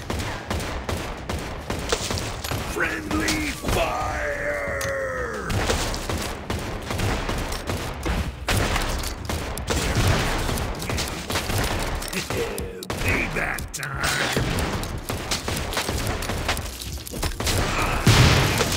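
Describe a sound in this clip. Cartoonish gunfire pops rapidly in quick bursts.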